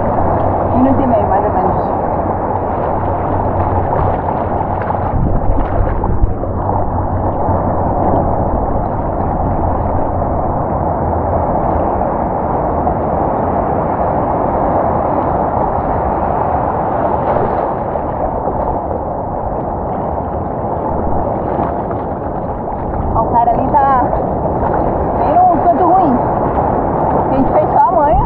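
Water sloshes and splashes close by, heard from right at the water's surface.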